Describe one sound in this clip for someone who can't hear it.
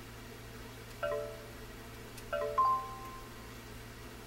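Short electronic beeps chime as letters are picked in a game.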